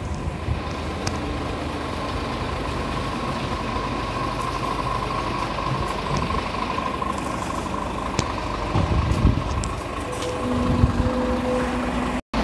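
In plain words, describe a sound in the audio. A truck engine idles nearby with a low rumble.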